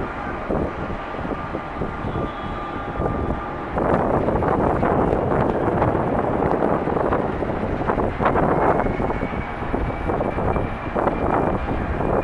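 A jet airliner's engines roar loudly as it speeds down a runway.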